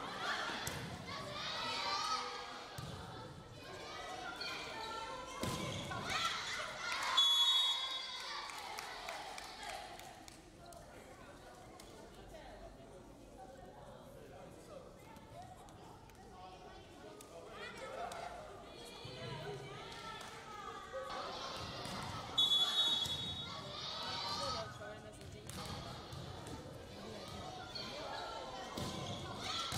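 A volleyball is struck with a slap.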